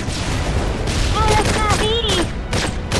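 Gunfire cracks in rapid shots.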